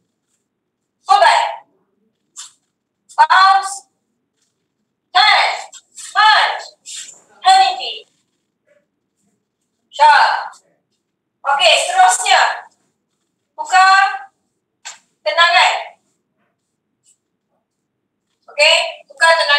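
A woman calls out short instructions over an online call, in bursts.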